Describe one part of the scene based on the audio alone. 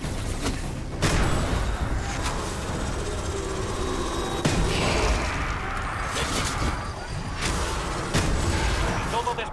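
Guns fire in sharp bursts.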